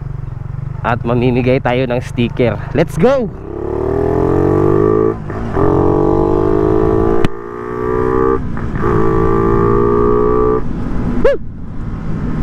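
A motorcycle engine revs and roars as it accelerates through the gears.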